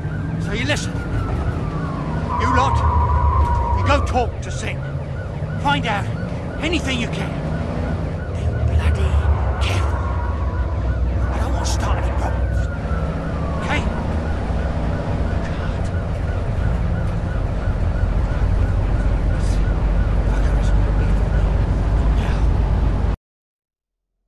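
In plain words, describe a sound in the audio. A man talks tensely into a phone earpiece nearby.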